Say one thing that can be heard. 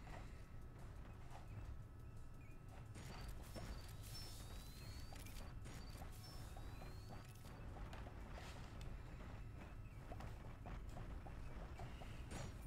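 Coins chime as they are picked up in a game.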